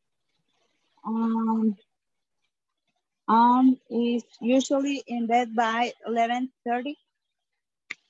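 A woman speaks calmly through an online call, in short phrases.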